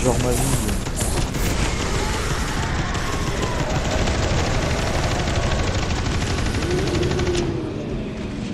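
Heavy guns fire in loud rapid bursts.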